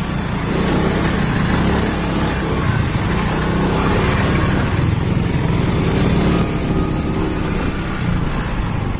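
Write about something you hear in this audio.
Motorcycle tyres rumble over a bumpy dirt track.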